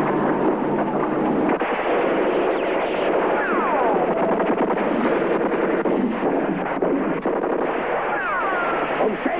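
Rifles fire in bursts.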